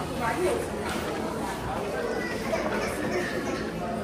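People chatter in the background of an echoing hall.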